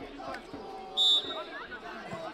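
A referee's whistle gives a short blast.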